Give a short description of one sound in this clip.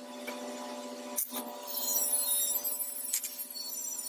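A power drill whirs.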